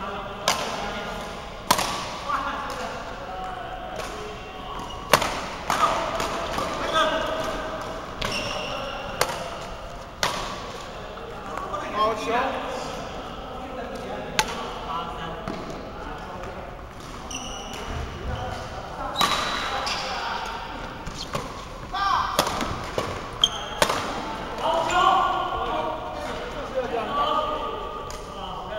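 Men call out and talk during play.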